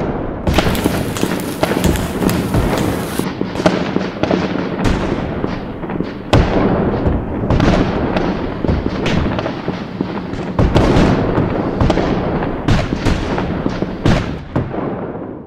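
Muskets fire in ragged volleys, with sharp cracks that echo outdoors.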